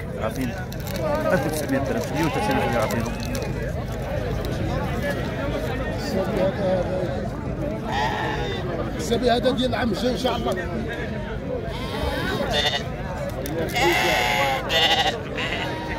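A crowd of men talk loudly all around, outdoors.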